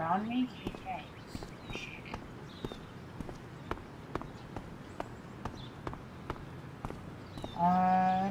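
Footsteps tap on pavement at a steady walking pace.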